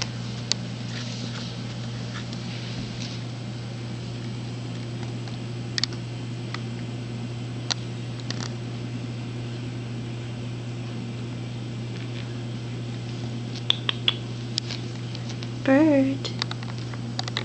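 A cat rubs its head against a carpeted post with a soft rustle.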